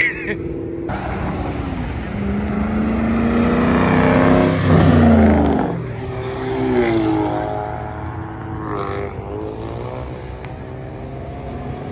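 Another car engine revs and rumbles loudly as it drives by.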